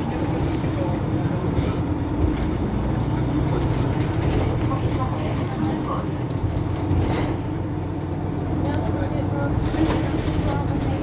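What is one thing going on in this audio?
A bus engine idles with a low steady rumble.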